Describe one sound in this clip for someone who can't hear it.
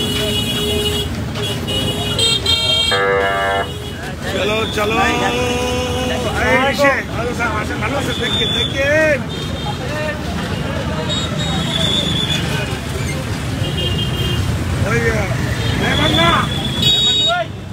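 A crowd of men talks loudly all around, outdoors on a busy street.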